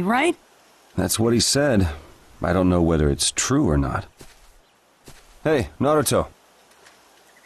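A man answers calmly.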